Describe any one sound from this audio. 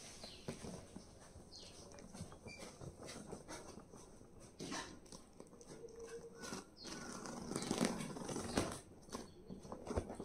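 Cardboard rustles and scrapes as a box is handled close by.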